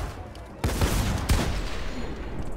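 A gun fires loud blasts.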